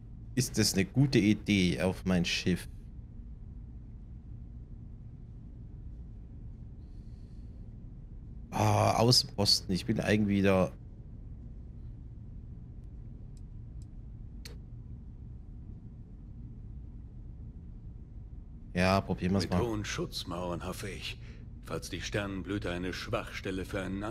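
A man speaks calmly and close by, in short bursts with pauses between.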